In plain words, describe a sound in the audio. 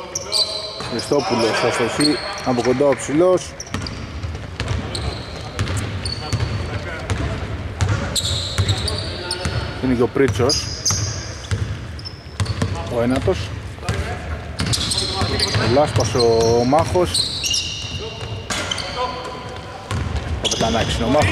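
Sneakers squeak on a hardwood basketball court in a large echoing arena.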